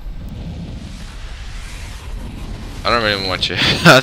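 A loud whoosh sweeps past.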